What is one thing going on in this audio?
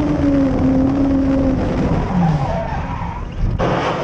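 A racing engine roars at high speed.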